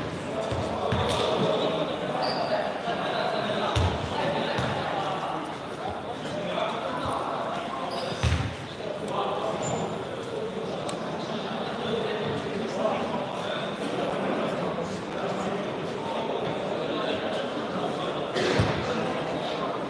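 Basketballs thump on a wooden floor in a large echoing hall.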